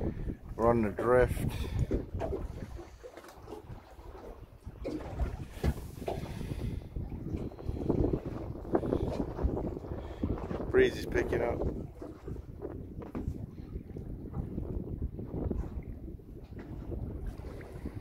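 Water splashes and laps against a moving boat.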